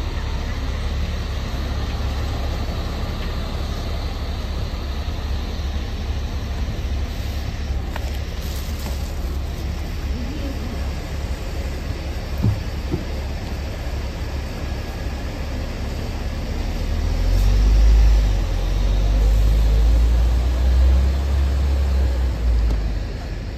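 A bus engine hums steadily close by.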